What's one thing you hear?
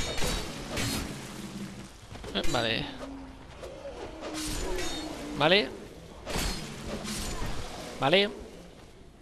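Swords swing and strike with sharp metallic hits.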